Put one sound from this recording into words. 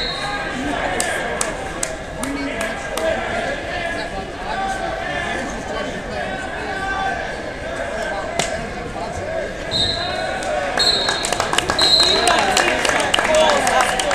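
A crowd of spectators chatters and murmurs in an echoing gym.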